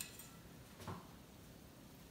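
A knife taps against an avocado pit.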